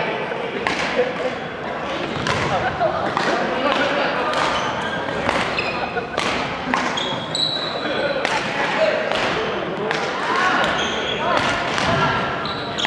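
Badminton rackets strike a shuttlecock back and forth in a large echoing hall.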